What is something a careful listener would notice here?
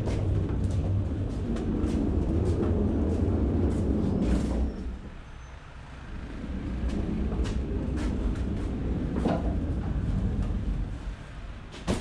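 A pallet truck rumbles across the hollow floor of a trailer.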